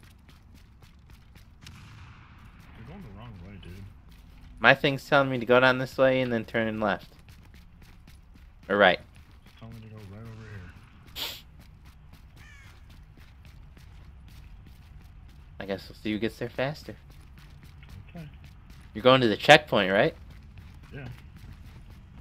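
Footsteps crunch quickly through snow.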